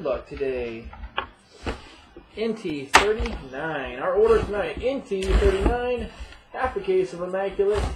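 A cardboard box scrapes and bumps on a wooden table.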